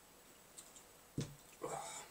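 A glass is set down on a table.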